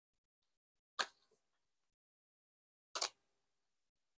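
Cards are slapped down onto a table.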